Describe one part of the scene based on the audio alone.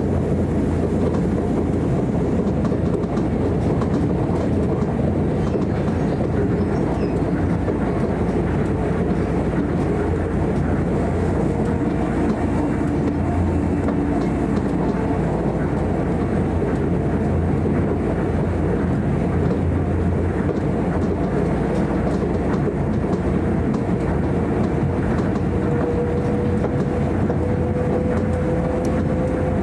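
A train rumbles steadily along an elevated track, heard from inside a carriage.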